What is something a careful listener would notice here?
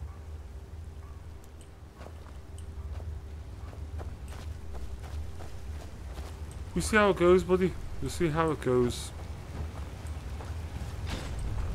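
Footsteps tread on stone and wooden boards.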